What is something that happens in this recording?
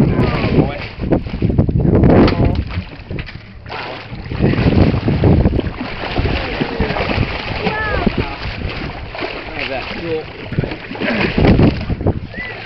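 Water splashes as a shark thrashes at the surface.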